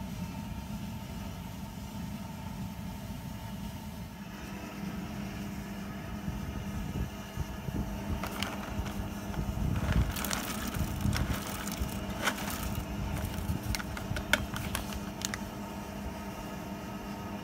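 Liquid boils and bubbles steadily.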